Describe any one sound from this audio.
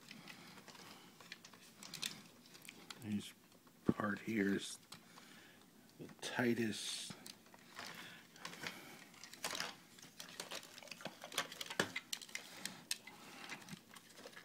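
Plastic parts click and snap as hands twist a toy.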